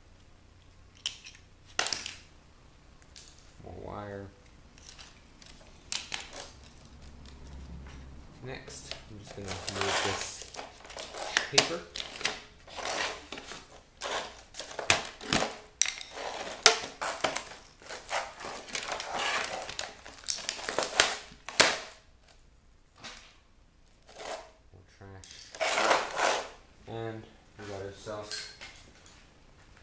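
Metal and plastic pieces clatter on a hard floor.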